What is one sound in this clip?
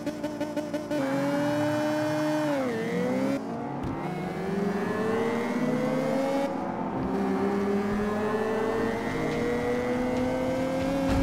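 A racing car engine roars as the car accelerates, its pitch climbing and dropping with each gear change.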